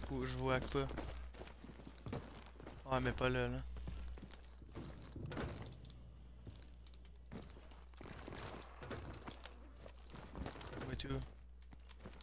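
Footsteps patter quickly on a hard floor.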